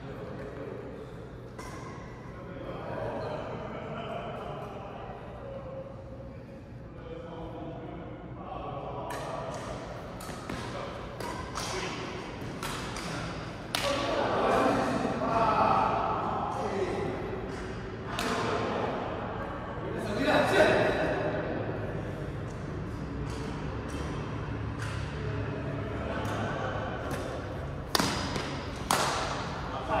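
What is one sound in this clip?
Men talk and call out now and then, in an echoing hall.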